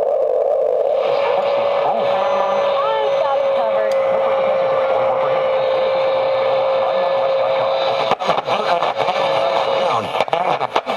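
A radio whistles and squeals between stations.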